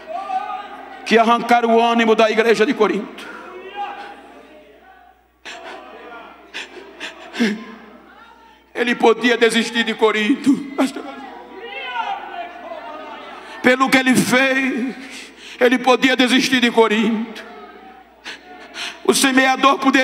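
An elderly man preaches forcefully into a microphone, his voice echoing in a large hall.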